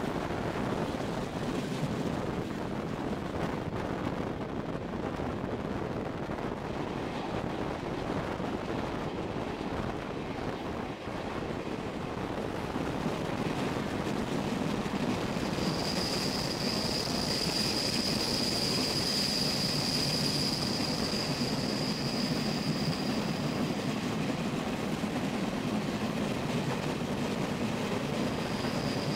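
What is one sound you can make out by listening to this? A train rumbles steadily along the rails, heard from an open window in rushing wind.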